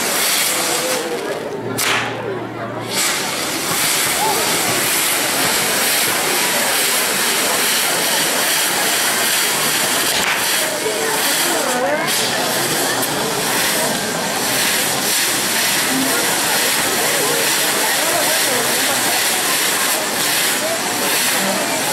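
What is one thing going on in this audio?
Sparks crackle and pop from a spinning firework.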